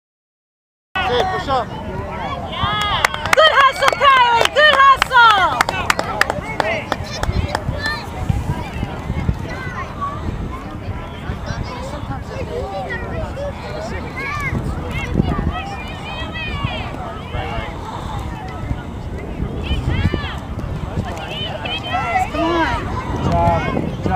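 Young girls shout to each other outdoors.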